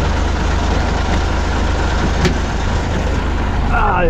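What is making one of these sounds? A truck door creaks open.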